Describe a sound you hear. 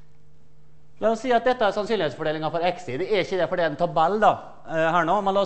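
A man lectures in a steady, animated voice.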